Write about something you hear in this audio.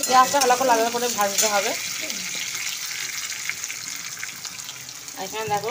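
A spatula scrapes against a metal pan.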